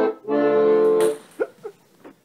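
An accordion plays a loud chord.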